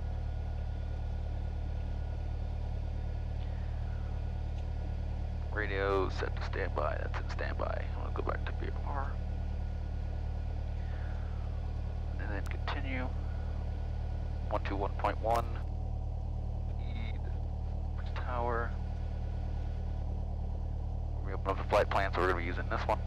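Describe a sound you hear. A small plane's engine drones steadily inside the cabin.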